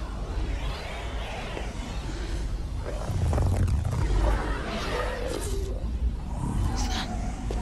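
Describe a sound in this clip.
A swirling portal roars with a deep, rushing whoosh.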